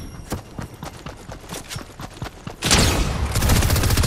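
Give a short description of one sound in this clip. A tool swishes through the air in a quick swing.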